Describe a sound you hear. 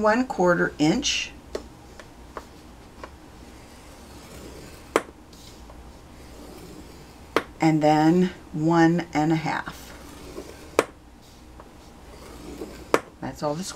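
A stylus scrapes along paper on a hard board.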